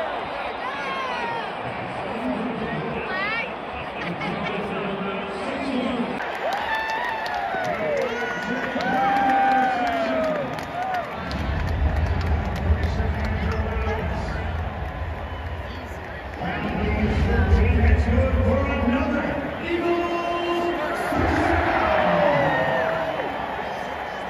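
Nearby spectators shout and whistle.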